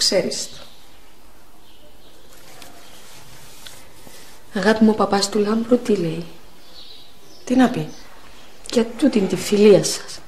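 A woman speaks quietly and calmly up close.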